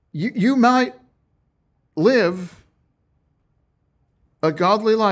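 A middle-aged man speaks calmly and clearly into a close microphone, in short phrases with pauses.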